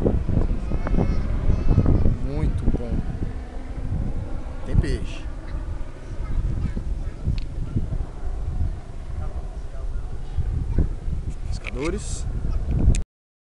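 Wind buffets the microphone outdoors, rumbling low and gusting.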